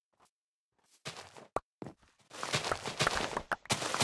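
Crops rustle and break in quick bursts.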